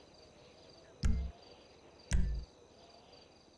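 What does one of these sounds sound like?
Two short, deep menu sounds thump in quick succession.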